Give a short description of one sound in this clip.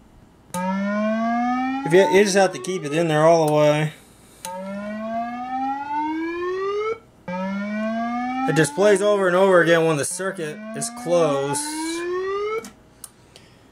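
A loudspeaker plays a rising electronic tone over and over.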